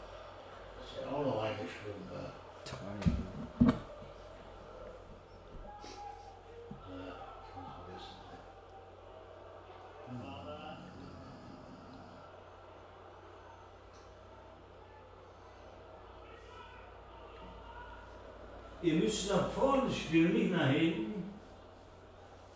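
A man cries out in dismay close by.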